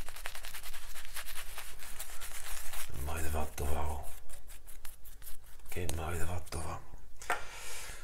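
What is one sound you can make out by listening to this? A shaving brush swishes and lathers on a face.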